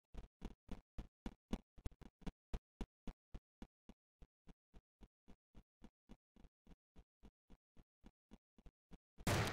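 Footsteps tap quickly and evenly.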